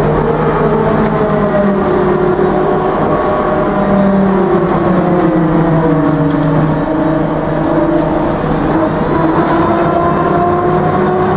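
A bus motor whines steadily, its pitch slowly gliding up and down.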